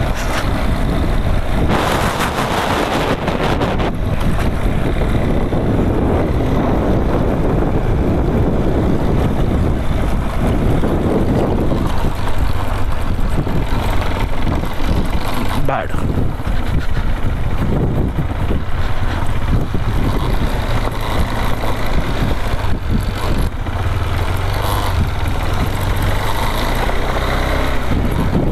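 Wind rushes and buffets past the rider.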